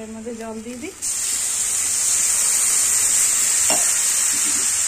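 Water pours into a hot pan with a loud hiss.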